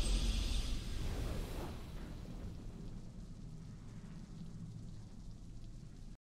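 A triumphant game fanfare swells and fades into low music.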